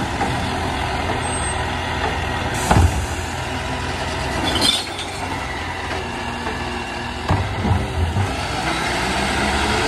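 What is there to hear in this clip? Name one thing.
A mechanical arm on a garbage truck whirs as it lifts a bin.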